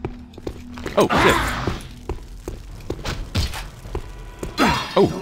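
A flaming sword whooshes and roars through the air.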